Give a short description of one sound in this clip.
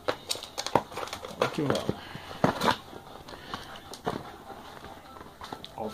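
Plastic wrap crinkles.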